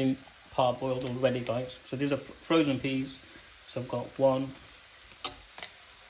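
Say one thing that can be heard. Green beans drop into a pan.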